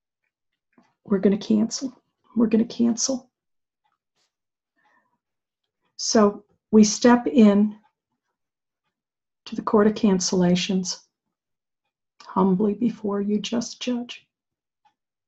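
An older woman speaks calmly and slowly, close to a microphone, in short phrases with pauses.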